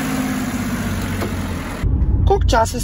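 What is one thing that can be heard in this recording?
A car engine hums outdoors.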